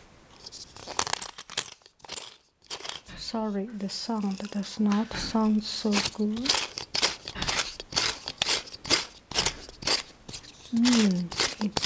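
Lotion squelches wetly as it is rubbed into skin.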